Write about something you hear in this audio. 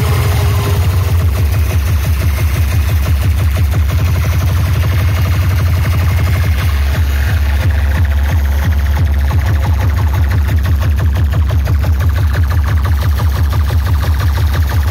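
Loud dance music with a heavy, fast thumping beat plays over loudspeakers, heard up close and distorted.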